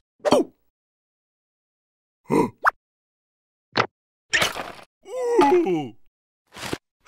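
A cartoon creature squeals and babbles in a high, silly voice.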